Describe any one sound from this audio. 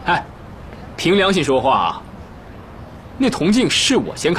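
A young man speaks with animation, pleading.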